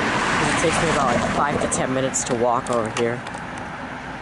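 Geese honk loudly overhead, outdoors.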